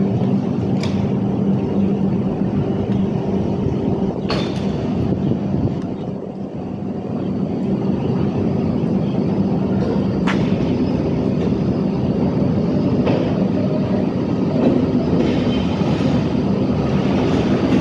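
A passenger train rumbles slowly closer.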